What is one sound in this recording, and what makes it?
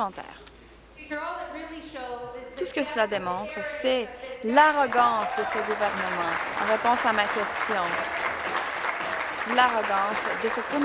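A woman speaks forcefully through a microphone.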